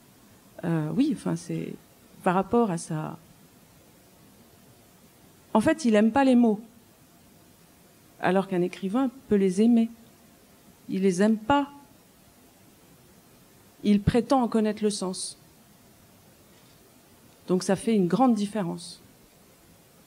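An elderly man speaks calmly in short phrases with long pauses.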